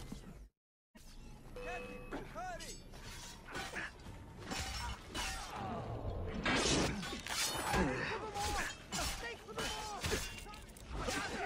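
Swords clash and ring in a close fight.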